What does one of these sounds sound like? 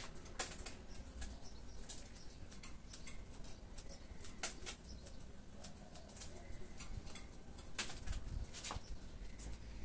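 Scissors snip hair close by, in quick crisp clicks.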